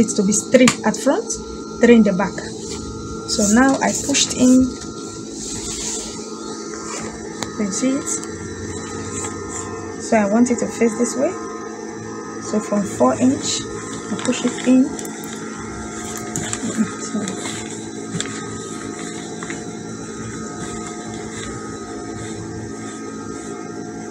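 Fabric rustles as hands smooth and move it.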